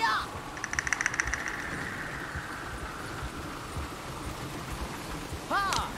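Wooden wagon wheels rattle and creak over the ground.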